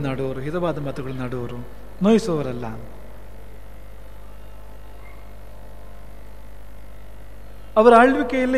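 A man sings slowly into a microphone, with pauses.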